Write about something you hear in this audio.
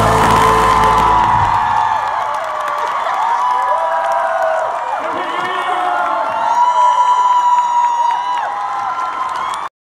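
A second young man sings along through a microphone.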